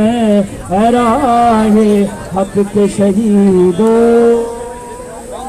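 A young man shouts slogans loudly through a megaphone.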